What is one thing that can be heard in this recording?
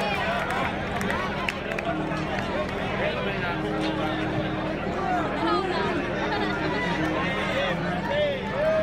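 A large crowd chatters and calls out loudly outdoors.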